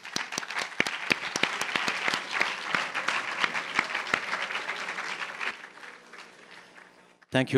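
A crowd applauds loudly in a large echoing hall.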